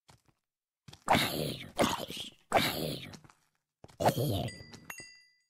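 A sword strikes a zombie several times.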